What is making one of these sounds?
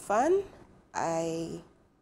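A young woman speaks with emotion through a microphone.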